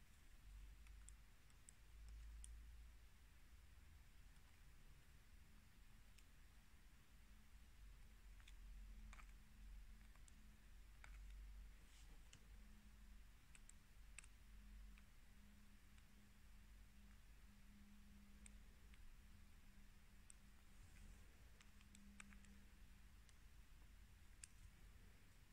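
A stylus taps and scratches lightly on a glass touchscreen.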